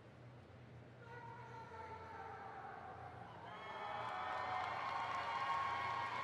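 A marching band plays brass chords that swell louder in a large open stadium.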